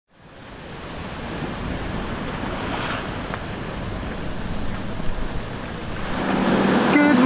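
Wind and waves rush around a boat at sea.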